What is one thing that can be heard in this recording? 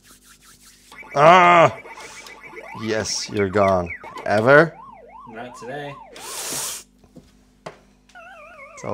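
An arcade game plays electronic jingles, warbling tones and bleeps.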